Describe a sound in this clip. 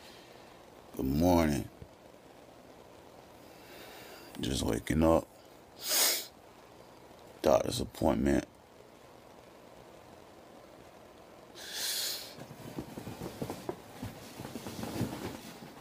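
A young man speaks softly and close up.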